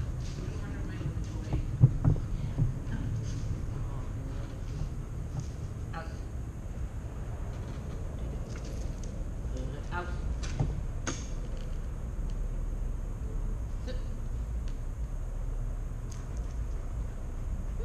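An elderly woman speaks calmly to a dog in a large echoing hall.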